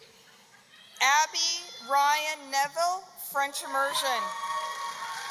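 A woman reads out a name over a loudspeaker in a large echoing hall.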